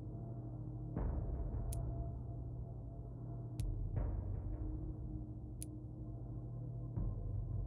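Soft clicks sound as a menu selection moves.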